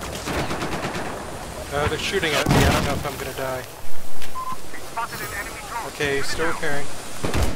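A repair tool crackles and hisses with sparks.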